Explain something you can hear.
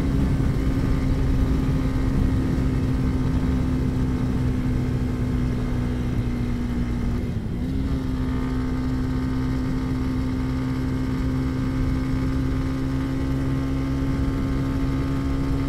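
A motorcycle engine hums steadily up close, dipping briefly as the rider shifts gear.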